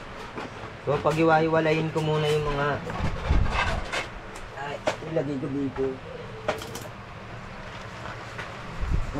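A large plastic-coated paper sheet rustles and crinkles as it is handled and rolled.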